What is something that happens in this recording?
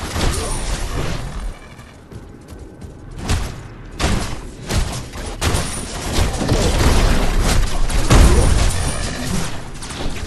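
Blades swing and strike with sharp hits in a fast fight.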